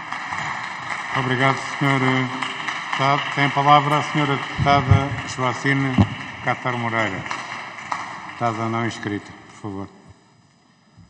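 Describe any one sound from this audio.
A man speaks formally through a microphone in a large echoing hall.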